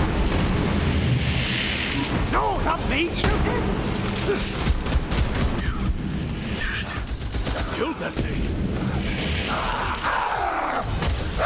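Energy blasts explode with a crackling burst.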